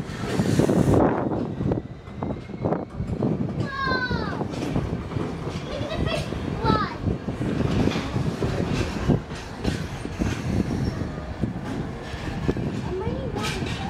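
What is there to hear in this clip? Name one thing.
Freight wagon wheels clatter over the rails.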